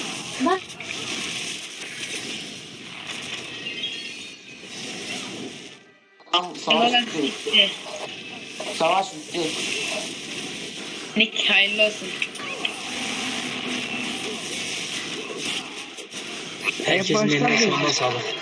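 Magic spells crackle and whoosh in a busy battle.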